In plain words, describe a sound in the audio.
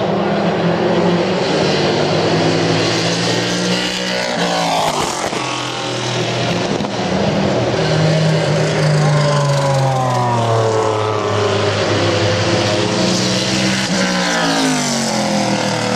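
Wet tyres hiss on the track.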